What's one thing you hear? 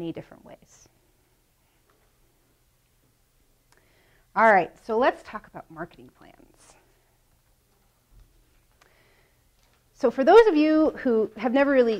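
A young woman speaks with animation, pausing between phrases.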